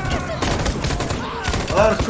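A rifle fires in loud bursts.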